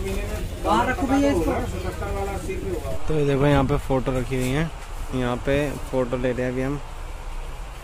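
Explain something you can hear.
A man speaks close by.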